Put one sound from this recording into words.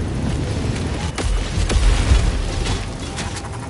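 A heavy object slams into the ground with a deep booming rumble.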